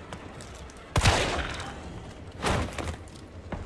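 A pistol fires two loud shots.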